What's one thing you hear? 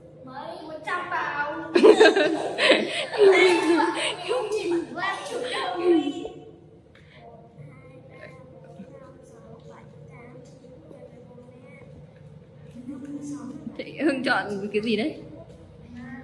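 Young boys laugh.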